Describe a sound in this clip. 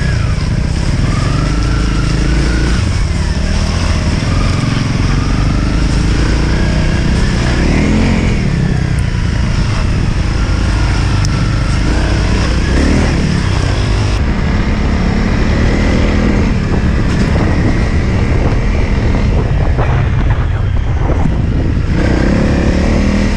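Wind rumbles loudly across the microphone.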